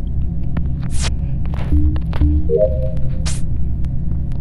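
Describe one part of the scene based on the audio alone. A game plays short electronic beeps.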